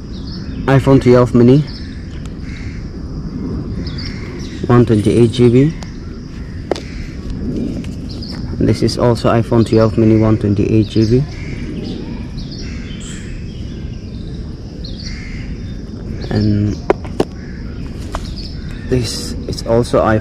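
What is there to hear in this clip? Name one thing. Phones clack softly as a hand picks them up and sets them down.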